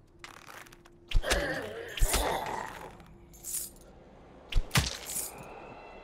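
A bowstring creaks and twangs as arrows are shot.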